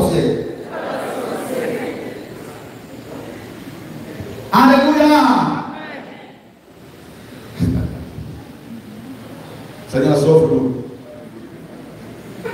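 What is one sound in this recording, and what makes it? A crowd of people murmurs and chatters quietly in a large room.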